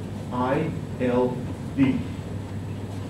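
A man speaks calmly.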